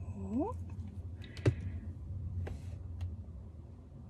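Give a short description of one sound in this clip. A plastic bottle is set down on a table with a knock.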